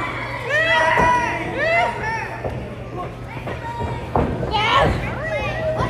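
Wrestlers thud heavily onto a ring mat.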